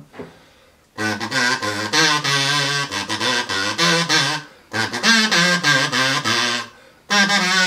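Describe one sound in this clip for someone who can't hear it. A kazoo buzzes a tune.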